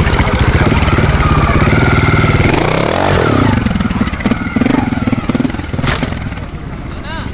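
A motorcycle engine revs and sputters close by.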